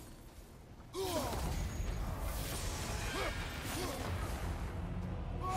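A magical portal bursts open with a loud whooshing roar.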